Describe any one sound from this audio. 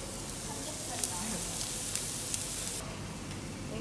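Pork strips sizzle on a hot grill.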